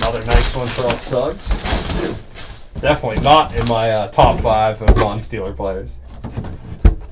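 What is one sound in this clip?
Cardboard packaging rustles and scrapes under a hand.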